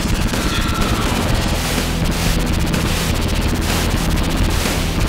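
Video game weapons fire in quick bursts.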